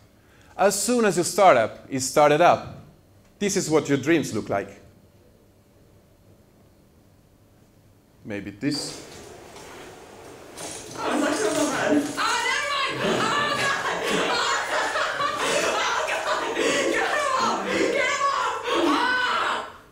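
A young man speaks calmly into a microphone, heard through loudspeakers in a large room.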